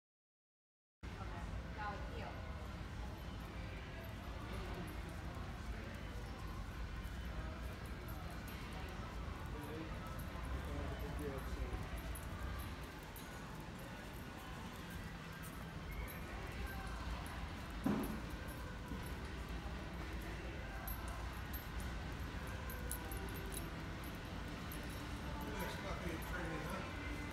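A woman speaks softly and calmly to a dog nearby.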